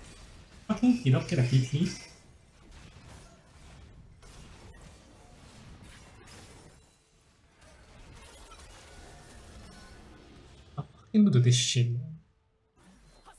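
Magical blasts whoosh and crash in a fast fantasy battle.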